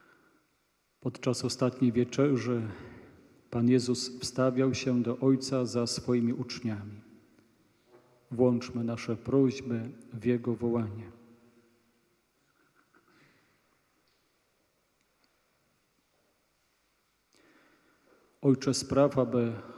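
A man chants in a steady, sung voice through a microphone, echoing in a large hall.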